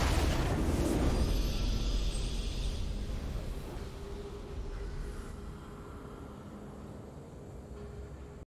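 A triumphant game victory fanfare swells and slowly fades.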